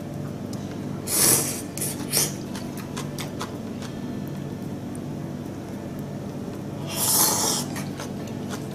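A person slurps noodles loudly, close by.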